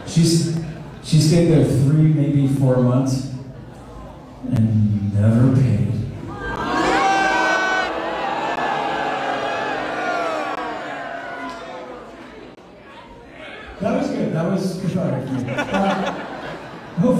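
An electric guitar plays loudly through amplifiers.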